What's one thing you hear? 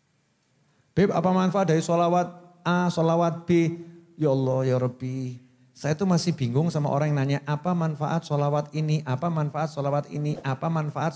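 A man speaks steadily through a loudspeaker in a large room.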